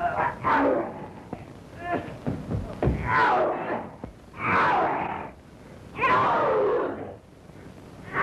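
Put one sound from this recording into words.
A man grunts and cries out as he struggles.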